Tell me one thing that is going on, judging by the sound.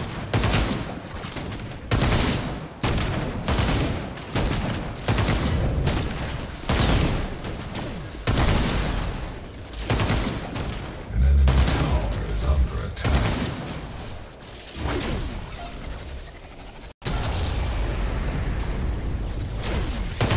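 Game weapons fire and blast in rapid bursts.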